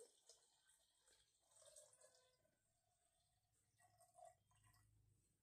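Glass bangles jingle faintly on a moving wrist.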